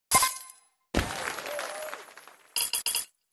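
A cheerful victory jingle plays.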